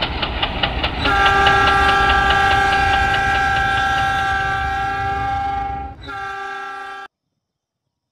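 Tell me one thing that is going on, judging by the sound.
A train horn blares long and loud.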